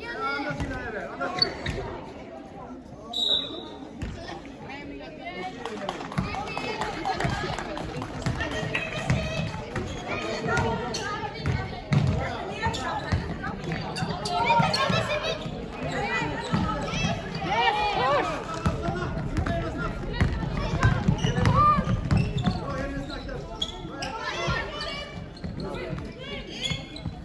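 Sneakers squeak on a court in a large echoing hall.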